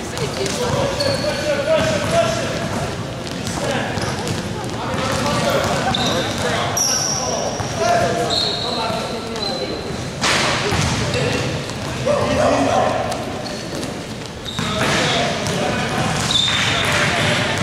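Sneakers squeak sharply on a hard court floor in a large echoing hall.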